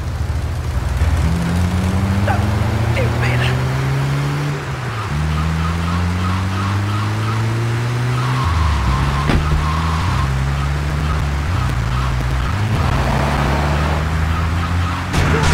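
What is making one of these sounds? A van engine revs up repeatedly as it shifts through gears.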